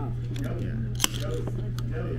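A soda can tab snaps open with a sharp hiss.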